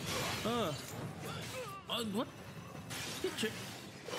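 A magical blast crackles and shatters.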